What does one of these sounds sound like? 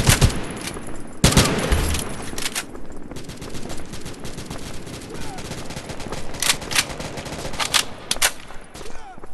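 Gunshots crack loudly in short bursts.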